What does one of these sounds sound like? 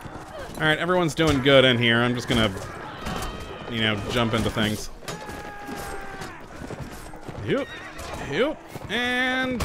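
Swords clash and clang in a battle.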